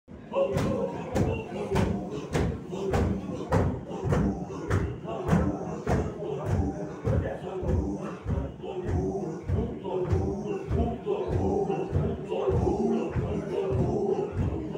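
Feet stamp rhythmically on a wooden floor.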